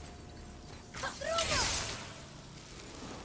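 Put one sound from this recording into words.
Magic energy crackles and hums.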